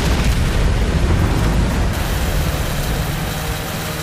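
Sparks hiss and crackle against metal.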